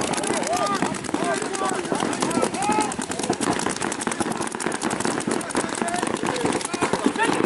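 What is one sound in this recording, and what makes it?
Paintball guns fire in rapid, popping bursts outdoors.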